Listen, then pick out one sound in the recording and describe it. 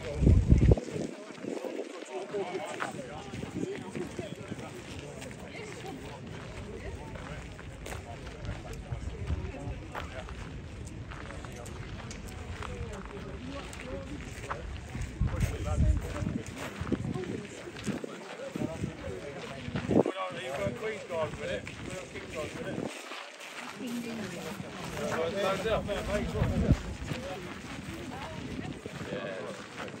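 Men talk nearby in a relaxed way outdoors.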